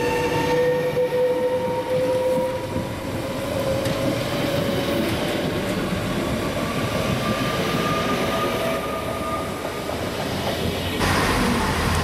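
An electric train rushes past with a rising whine.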